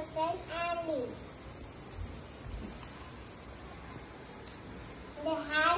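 A young girl reads aloud in a high, clear voice, close by.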